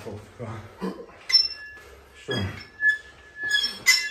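Metal weight plates clink.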